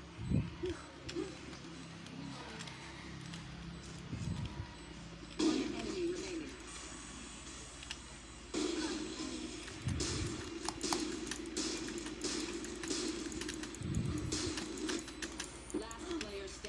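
Video game sound effects play through speakers.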